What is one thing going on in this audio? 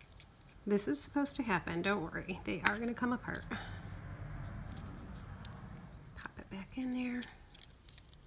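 Plastic parts click as they are snapped open and shut.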